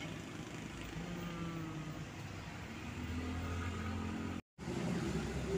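A diesel dump truck engine rumbles close by.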